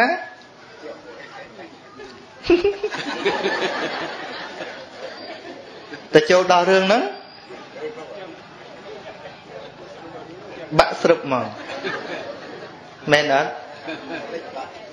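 A middle-aged man speaks steadily and earnestly into a microphone.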